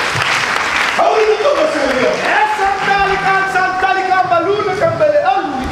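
A choir sings along.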